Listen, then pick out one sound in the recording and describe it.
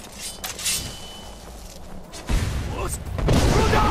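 A blade swings and strikes with a clash.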